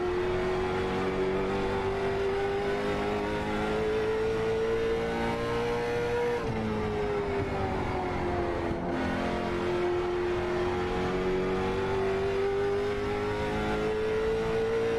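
A race car engine drones loudly, rising and falling in pitch as the car speeds up and slows down.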